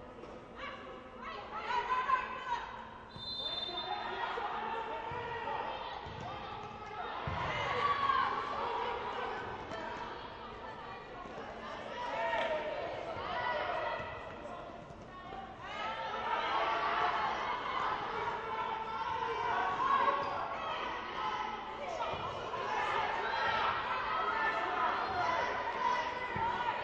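Young women shout to each other in a large echoing hall.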